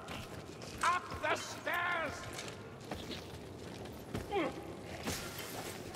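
Weapons strike and clash in a close fight.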